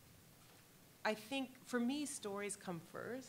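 A woman speaks into a microphone, heard through loudspeakers in a large room.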